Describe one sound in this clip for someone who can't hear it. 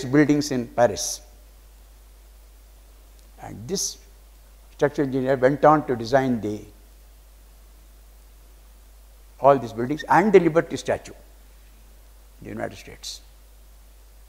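An elderly man speaks calmly into a microphone, in bursts with pauses.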